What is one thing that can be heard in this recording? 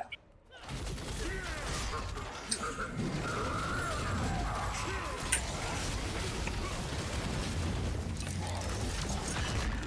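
Magical spell blasts and sword impacts crash and whoosh in a fierce battle.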